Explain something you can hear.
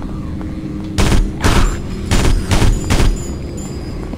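Gunshots fire in short, rapid bursts.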